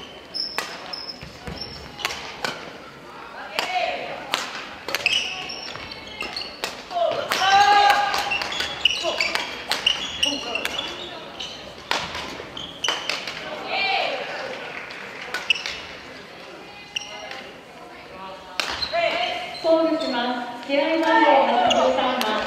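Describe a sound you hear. Shoes squeak on the hall floor.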